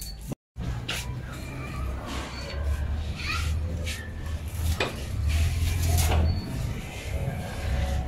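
Wooden planks knock and clatter as they are handled.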